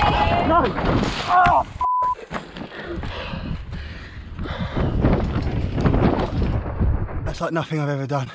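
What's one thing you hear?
Bike tyres rumble and rattle over a rocky dirt trail.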